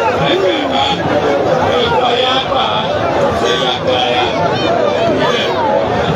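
A young man speaks excitedly into a microphone, heard through a loudspeaker.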